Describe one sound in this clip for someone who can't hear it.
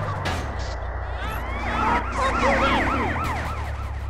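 A vehicle strikes a person with a thump.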